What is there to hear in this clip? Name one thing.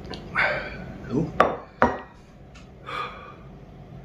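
A plate knocks on a table.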